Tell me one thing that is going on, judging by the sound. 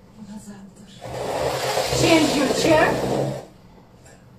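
A chair scrapes across a wooden floor.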